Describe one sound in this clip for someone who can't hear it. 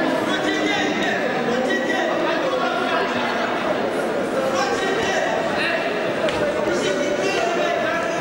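A crowd chatters and shouts throughout a large echoing hall.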